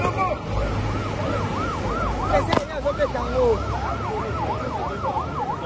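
A siren wails up and down steadily.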